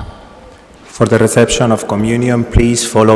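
A man chants loudly through a microphone in a large echoing hall.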